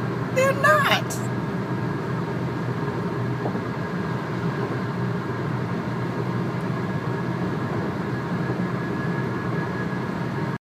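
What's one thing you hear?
A car engine and road noise rumble steadily inside a moving car.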